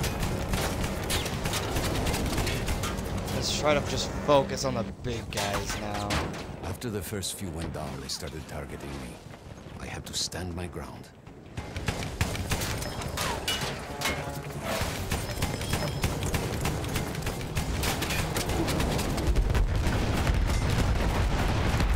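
Shells burst with loud booms.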